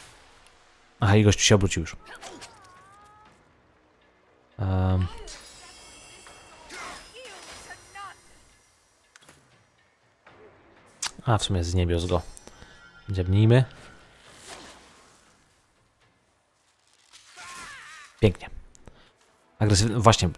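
Swords clash and strike in short bursts.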